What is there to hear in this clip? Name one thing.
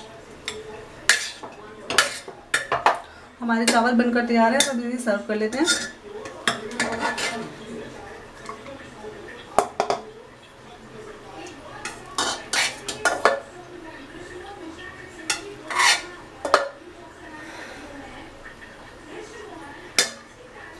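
A metal spoon clinks and scrapes against a metal pot.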